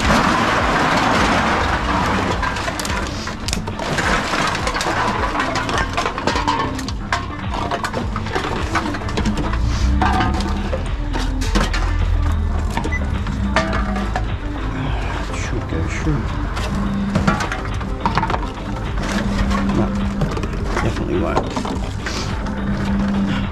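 Plastic bottles and cans clatter as they are fed into a machine.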